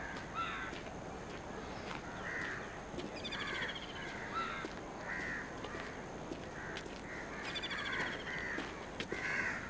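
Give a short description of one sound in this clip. Footsteps crunch softly on a dirt road.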